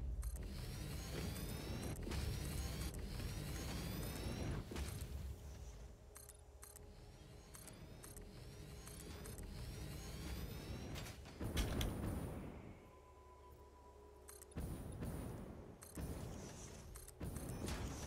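A game building tool clicks and thuds as walls snap into place.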